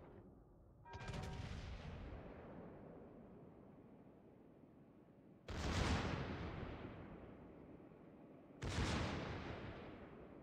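Battleship main guns fire in deep, booming salvos.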